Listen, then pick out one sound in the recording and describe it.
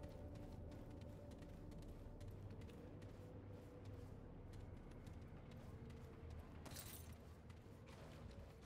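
Heavy boots step across a hard floor.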